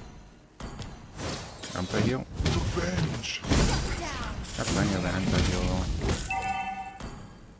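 Fighting sound effects clash and crackle loudly.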